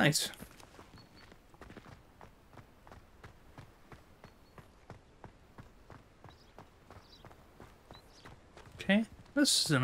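Quick footsteps patter on a stone path.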